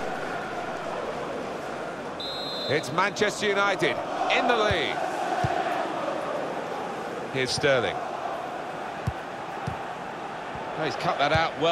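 A large crowd murmurs and chants steadily in a stadium.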